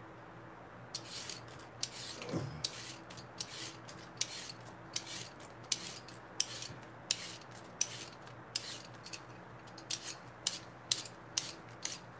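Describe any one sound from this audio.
A peeler scrapes quickly along a carrot in short strokes.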